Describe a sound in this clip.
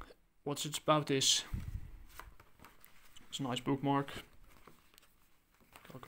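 Paper pages riffle and flip.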